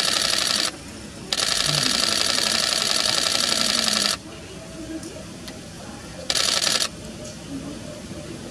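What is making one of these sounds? Water trickles over rocks.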